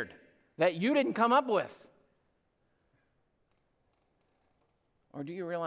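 A man speaks with emphasis into a microphone, heard through a loudspeaker.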